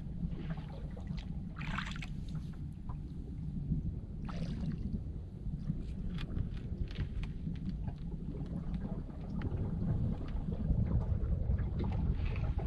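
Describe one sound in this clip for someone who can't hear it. Wind blows steadily across open water outdoors.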